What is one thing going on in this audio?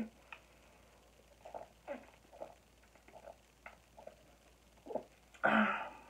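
A young woman gulps a drink in small swallows.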